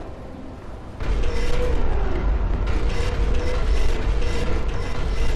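A shell explodes with a heavy boom.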